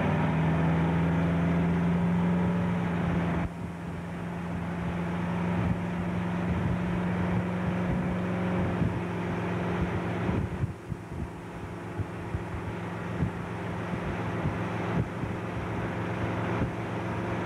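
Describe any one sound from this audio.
Water rushes and splashes around water skis.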